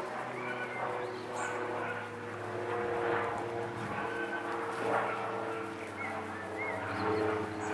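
Puppies' paws patter and rustle through grass.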